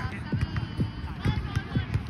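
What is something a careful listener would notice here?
A volleyball thumps off a player's forearms.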